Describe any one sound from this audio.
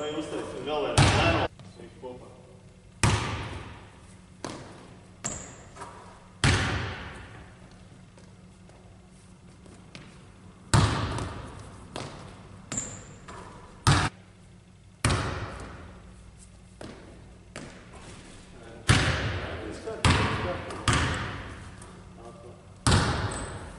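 A basketball bounces hard on a wooden floor, echoing around a large hall.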